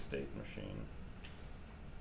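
A marker pen scratches on paper.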